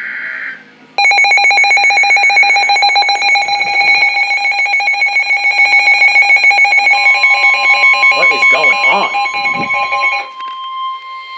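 A weather radio blares a loud, rapidly pulsing alert tone.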